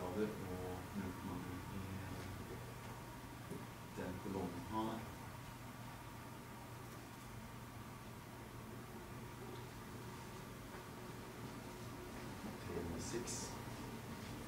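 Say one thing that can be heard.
An older man speaks calmly in a room with a slight echo.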